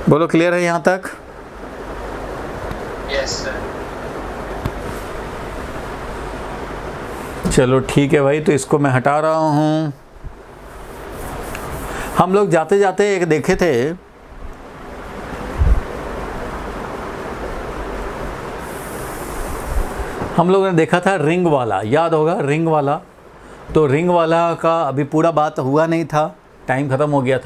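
A man lectures calmly, close by.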